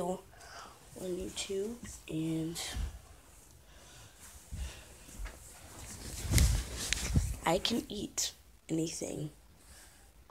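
A boy talks close to a phone microphone.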